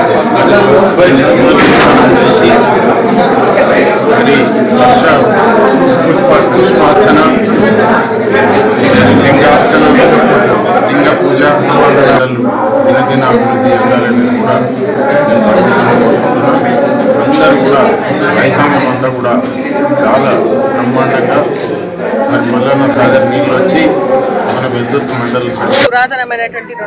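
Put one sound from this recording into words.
A middle-aged man speaks steadily into microphones close by.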